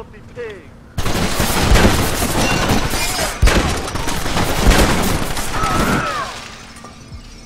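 Gunshots crack rapidly, close by.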